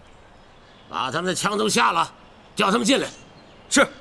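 A middle-aged man speaks firmly.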